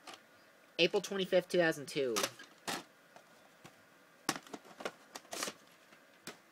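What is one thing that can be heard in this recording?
A plastic tape case clicks and clatters as a hand handles it.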